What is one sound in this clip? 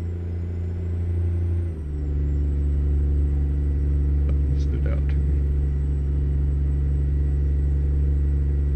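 A truck's diesel engine drones steadily as it drives.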